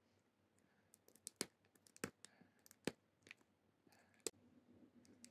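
Fingers pick and peel at crinkly plastic wrap with small clicks.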